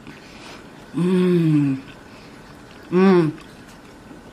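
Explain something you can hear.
A middle-aged woman hums with pleasure while chewing.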